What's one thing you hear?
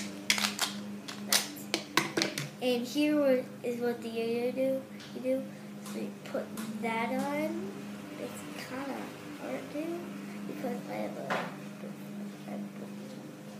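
A plastic toy clicks and rattles in a boy's hands.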